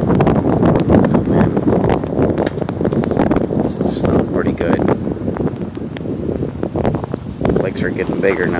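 Strong wind roars and buffets loudly outdoors.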